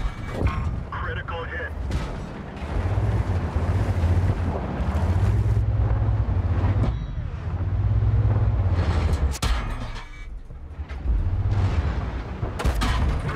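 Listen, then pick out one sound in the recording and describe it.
A heavy tank engine rumbles low and steadily.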